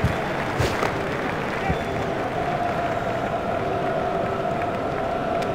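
A large crowd cheers and murmurs in a stadium.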